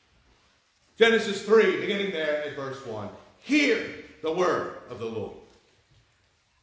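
A man speaks with animation into a microphone, echoing slightly in a large room.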